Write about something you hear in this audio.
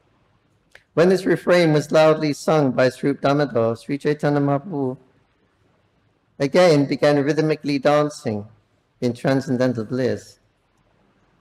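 An elderly man speaks calmly and close into a microphone.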